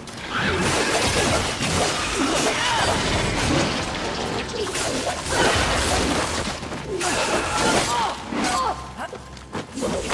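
Weapons clash and slash in a fight.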